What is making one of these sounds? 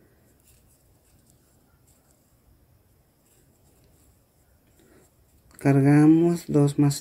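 A crochet hook softly rubs and pulls through yarn.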